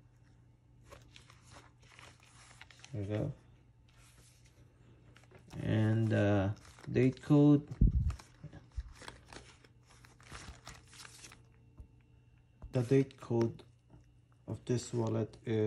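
Fingers rub and rustle against a leather wallet.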